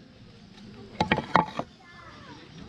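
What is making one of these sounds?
A plastic sign knocks down onto a wooden table.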